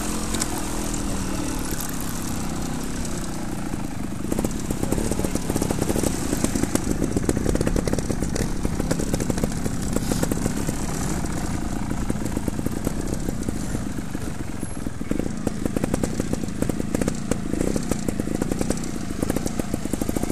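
Wind rumbles against a microphone outdoors.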